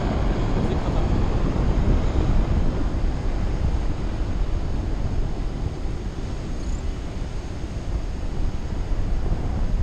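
Strong wind rushes and buffets against the microphone throughout.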